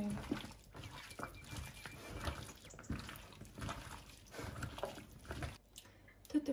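Hands squish and toss chunky food in a bowl.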